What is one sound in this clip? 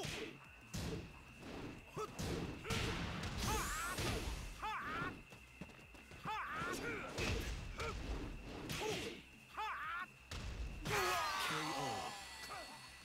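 Heavy punches and kicks land with sharp thuds and smacks.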